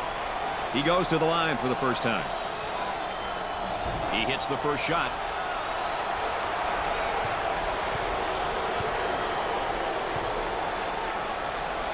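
A large crowd murmurs steadily in an echoing arena.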